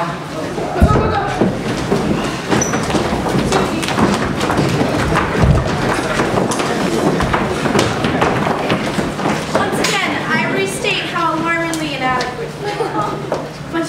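A group of young men and women sing together.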